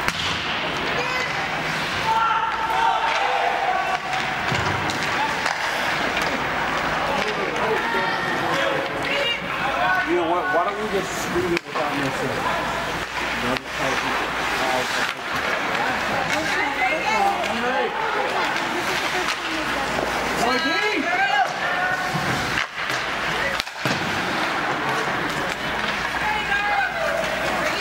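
Ice skates scrape and carve across ice.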